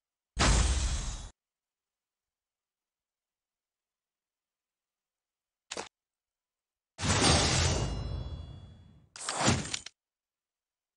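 Short electronic game sound effects and whooshes play in bursts.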